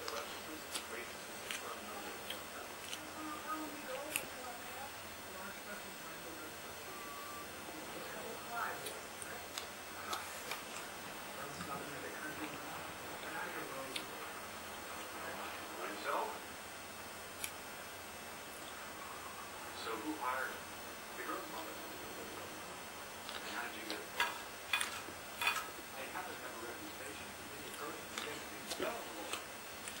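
A young man chews and slurps food noisily.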